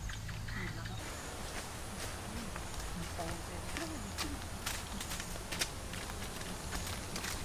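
Footsteps crunch on dry leaves along a forest path.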